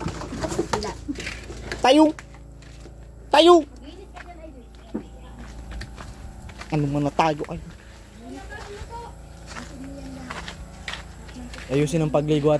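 Footsteps shuffle over dirt and gravel.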